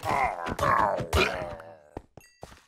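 A skeleton rattles and groans as it is hit.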